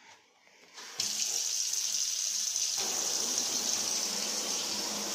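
Water pours from a tap into a metal sink and drains away.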